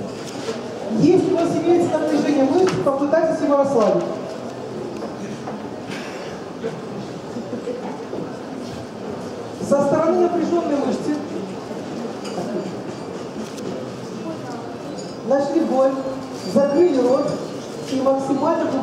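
A middle-aged woman speaks calmly through a microphone, explaining in bursts.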